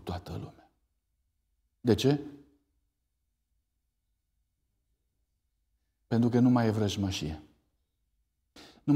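A man speaks calmly through a microphone in a large echoing hall, pausing between phrases.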